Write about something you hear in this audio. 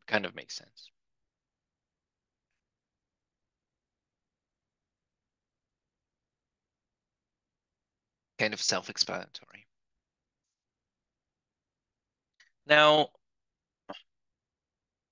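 A man speaks calmly into a microphone in short bursts, with long pauses.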